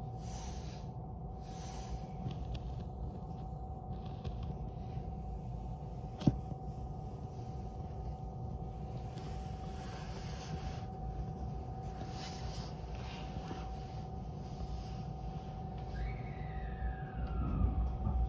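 A train idles with a steady low hum.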